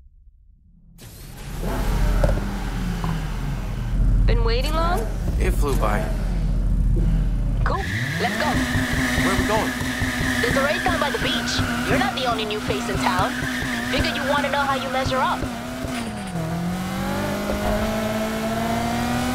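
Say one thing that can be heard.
A car engine rumbles and revs loudly.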